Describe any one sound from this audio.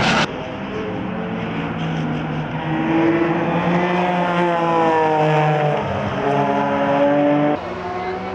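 A flat-six race car engine screams at full throttle and rises in pitch through the gears.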